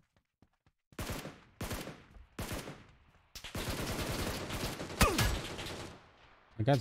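Rifle shots crack in quick bursts from a video game.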